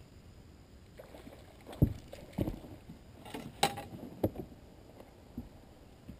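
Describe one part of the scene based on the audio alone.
Footsteps and knocks thump on a boat deck.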